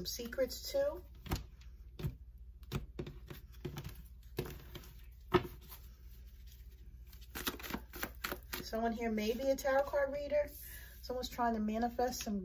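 Playing cards shuffle and slap softly onto a hard surface.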